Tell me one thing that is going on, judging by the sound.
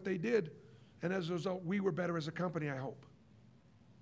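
A middle-aged man speaks with animation into a microphone.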